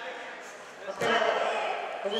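Wrestlers thud onto a mat.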